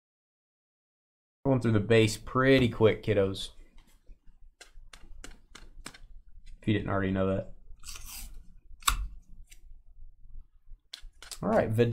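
Trading cards flick and shuffle in hands.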